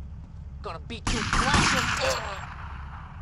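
A shotgun fires a loud blast.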